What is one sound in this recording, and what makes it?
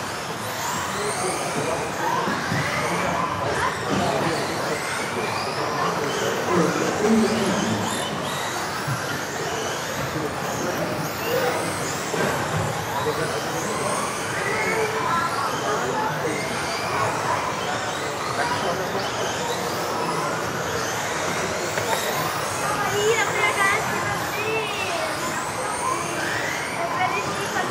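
Small electric motors whine and buzz, rising and falling as remote-controlled cars race around an echoing hall.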